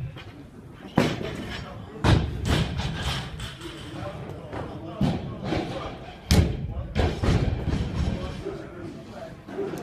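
Weight plates on a barbell clank and rattle as it swings.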